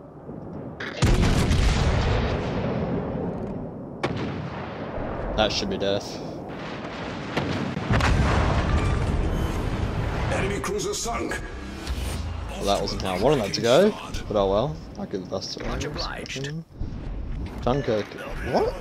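Heavy naval guns boom in loud blasts.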